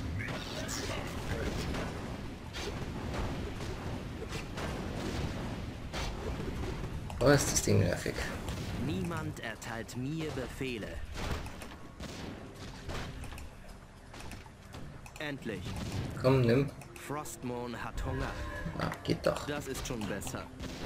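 Weapons clash and spells burst in a game battle.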